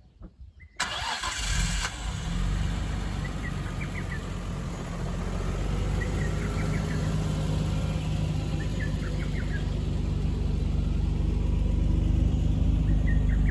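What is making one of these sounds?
A car engine idles with a deep, steady rumble that grows louder toward the exhaust.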